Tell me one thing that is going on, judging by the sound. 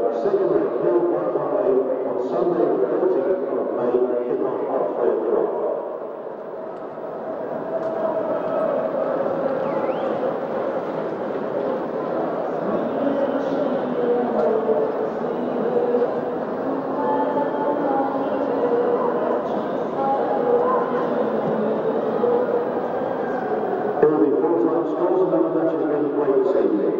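A large stadium crowd sings and chants loudly, echoing around the stands.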